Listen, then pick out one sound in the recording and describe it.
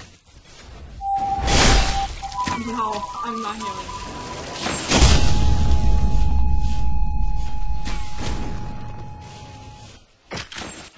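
Loud blasts and hits of game combat effects burst out, with a low rumble after them.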